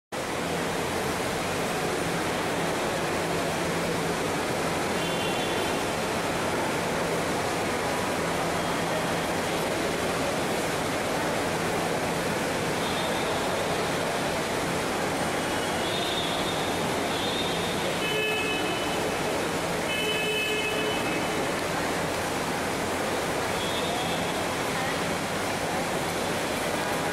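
A crowd of people chatters in a busy, echoing hall.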